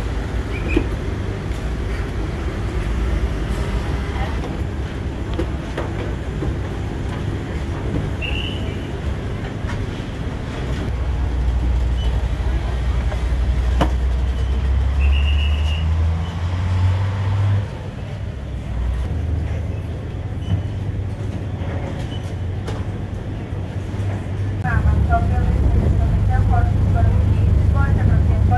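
Wind rumbles loudly across the recording outdoors.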